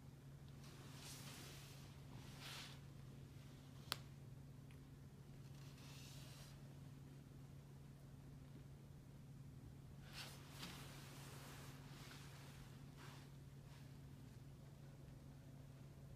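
Fabric rustles softly as hands handle clothing.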